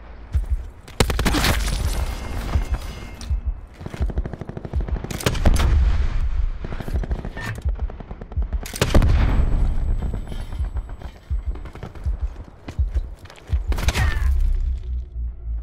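Gunfire bursts out in loud, rapid cracks.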